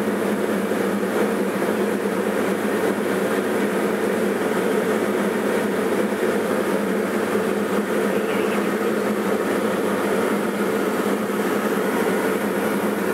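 A light propeller plane's engine drones steadily, heard from inside the cabin.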